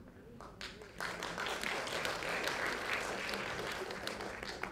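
An audience claps in a hall.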